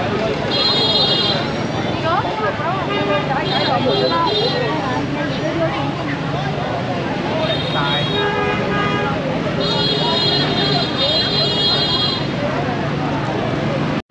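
A dense crowd chatters all around outdoors.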